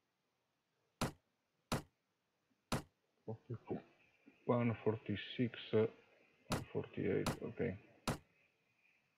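Short clicks sound as items are picked up and dropped.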